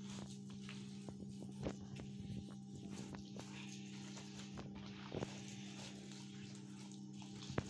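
Fingers crumble soft cheese against a clay dish with light taps and rustles.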